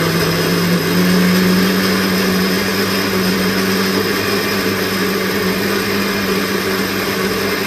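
A blender whirs loudly and steadily, blending liquid.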